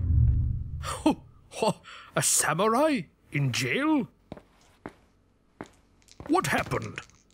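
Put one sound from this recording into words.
An elderly man speaks in a pleading voice, close by.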